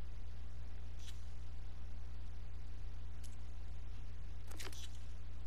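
A soft interface click sounds as a menu changes.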